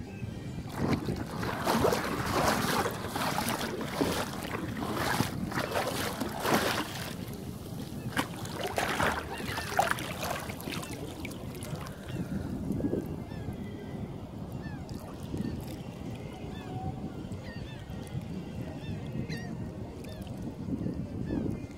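Shallow sea water laps and splashes close by.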